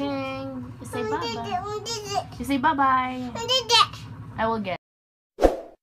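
A young boy speaks close by with animation.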